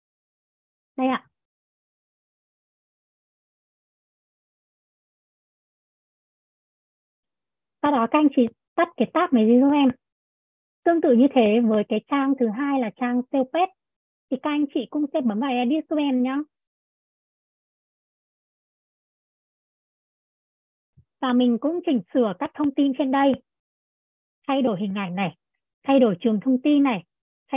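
A young woman speaks calmly through a microphone, explaining in short bursts with pauses.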